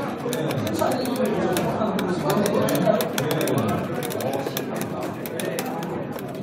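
A crowd chatters in the background of a busy hall.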